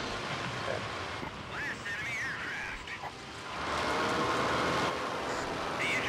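A propeller fighter plane's piston engine drones.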